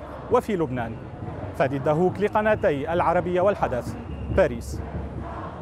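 A young man speaks calmly into a microphone outdoors.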